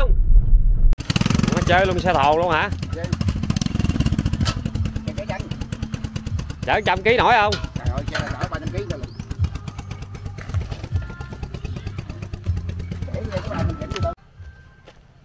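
A small motorbike engine runs with a rapid, rattling putter.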